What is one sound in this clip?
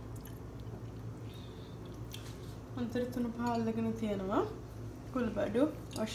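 A spatula scrapes and stirs rice in a pan.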